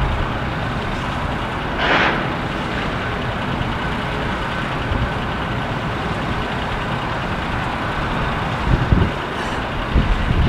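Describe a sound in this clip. A jet airliner's engines roar steadily as it taxis past.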